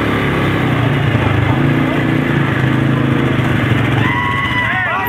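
Quad bike engines idle and rumble nearby.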